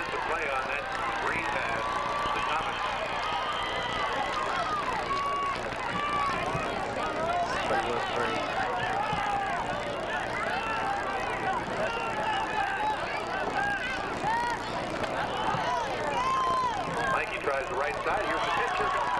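A crowd of men and boys shouts and cheers outdoors.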